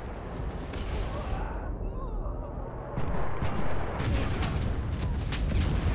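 Flames crackle and roar close by.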